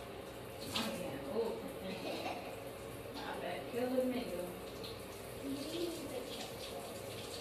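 A woman speaks nearby.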